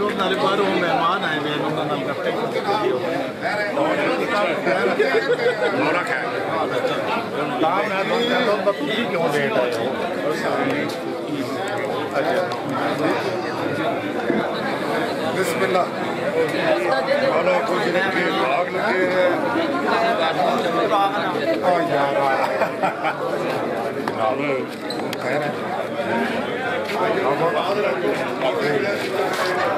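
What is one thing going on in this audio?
A crowd of men talk and greet one another outdoors.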